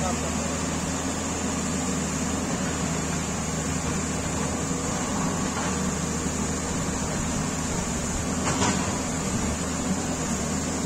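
A diesel excavator engine idles with a low, steady rumble.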